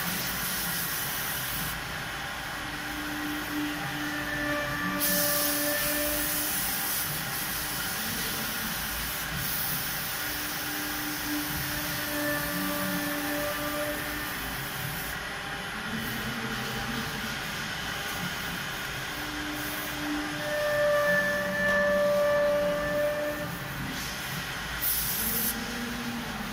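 Compressed air hisses in loud bursts from an air gun.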